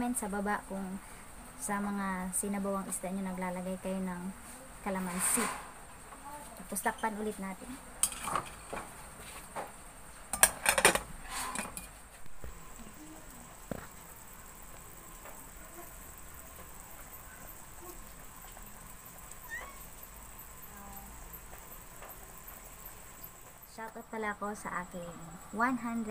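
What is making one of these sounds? A young woman talks calmly and closely.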